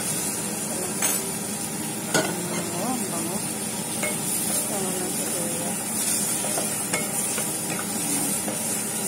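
A wooden spatula scrapes and taps against a pot.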